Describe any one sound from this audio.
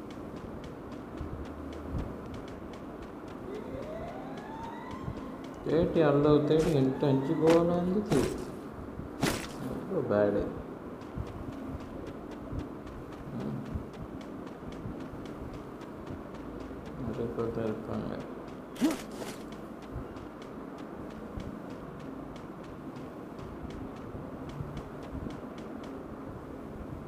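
Quick footsteps patter steadily on the ground.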